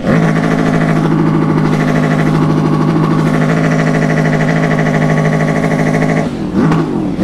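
A motorcycle engine runs loudly and steadily.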